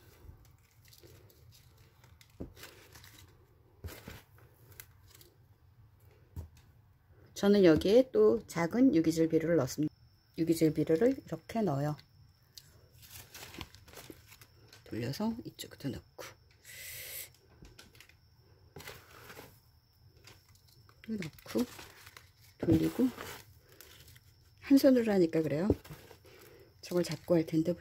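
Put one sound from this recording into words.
Fingers press and rustle loose potting soil.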